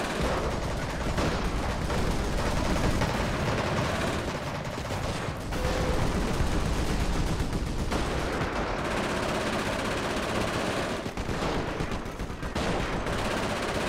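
Explosions boom and rumble throughout.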